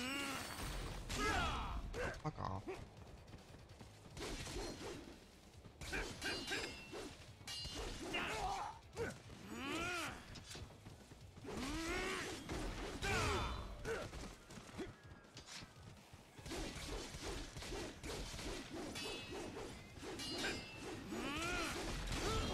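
Metal blades clash and ring in quick strikes.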